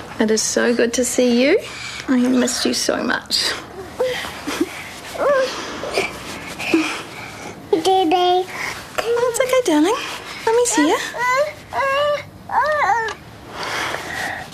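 A woman speaks softly and tenderly, close by.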